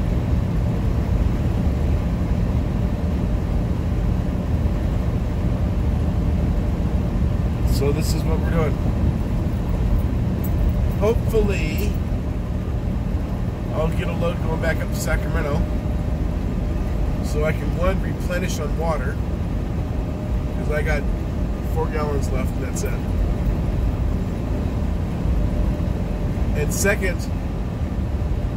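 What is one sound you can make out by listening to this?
A vehicle's engine and tyres rumble steadily on a highway from inside the cab.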